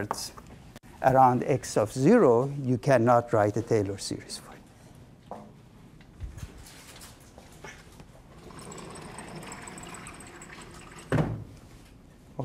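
A middle-aged man lectures calmly through a microphone.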